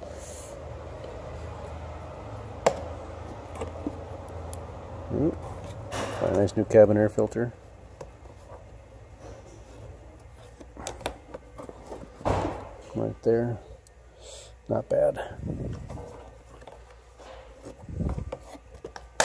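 Plastic parts click and rattle as a filter is pulled out and pushed back in.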